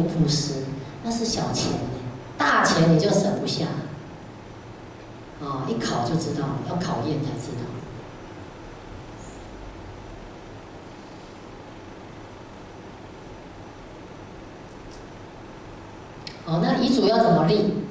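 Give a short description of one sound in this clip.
A woman speaks calmly into a microphone, pausing between phrases.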